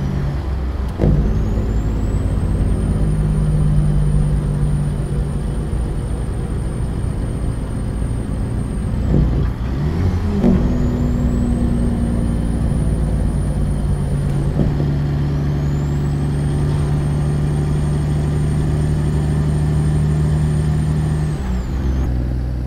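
A truck engine's pitch rises and falls as gears shift.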